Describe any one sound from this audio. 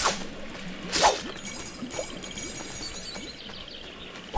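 Coins jingle and chime as they burst out and are picked up.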